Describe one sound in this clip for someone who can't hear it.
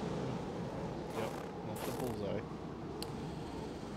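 Footsteps crunch in snow.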